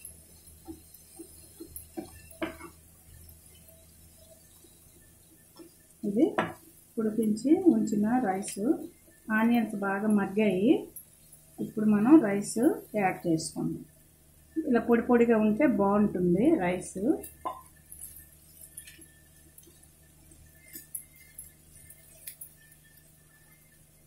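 A metal spatula scrapes and taps against a frying pan.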